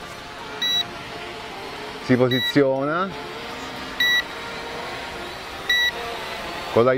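A remote controller beeps at regular intervals.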